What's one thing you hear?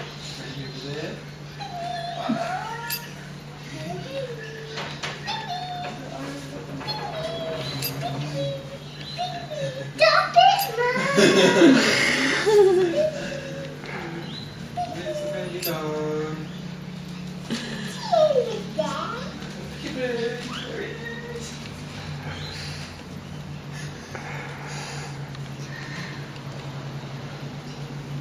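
A young girl talks and laughs close by in a high voice.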